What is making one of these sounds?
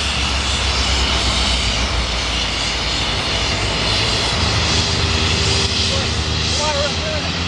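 A steam locomotive hauls a train in the distance.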